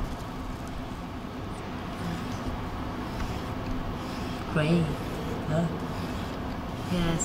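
A cotton swab rubs softly on a smooth surface.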